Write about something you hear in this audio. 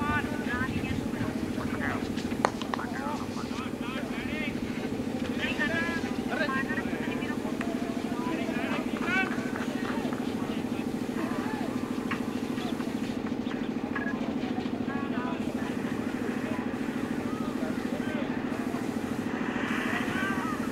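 Men call out and talk outdoors at a distance.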